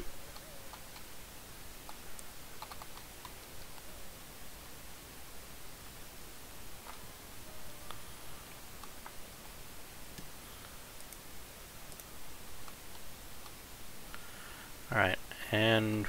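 Soft game blips and chimes sound as items are picked up.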